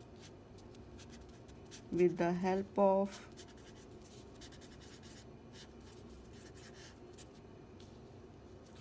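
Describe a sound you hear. A felt-tip marker squeaks and scratches softly across paper.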